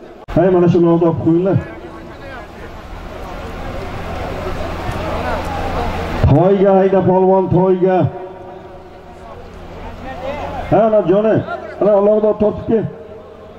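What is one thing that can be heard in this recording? A man shouts loudly in long calls.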